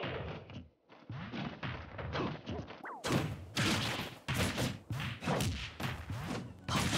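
Punches, sword swings and thuds from a fighting game ring out in quick succession.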